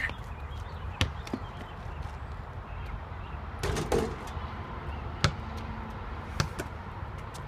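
A basketball bounces on pavement.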